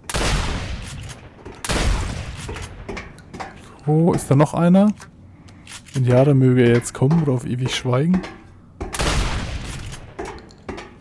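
A shotgun fires with loud booming blasts that echo away.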